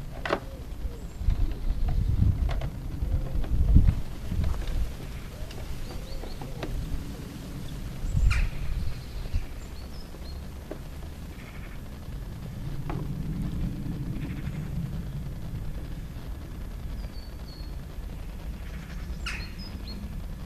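Plastic panels knock and creak as gloved hands pull them loose.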